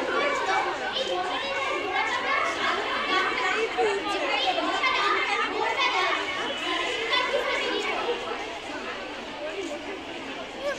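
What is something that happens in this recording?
A young girl speaks steadily into a microphone, heard through loudspeakers outdoors.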